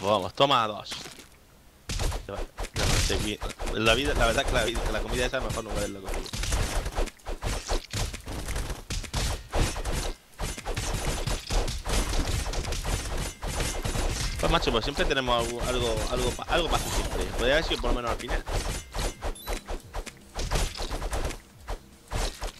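Quick hits, slashes and thuds from a video game clatter along.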